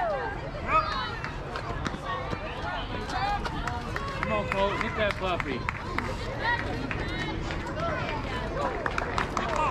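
Children shout and cheer outdoors from across a ball field.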